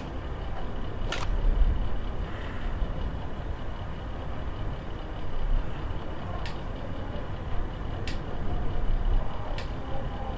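A computer terminal clicks and beeps as its menus open.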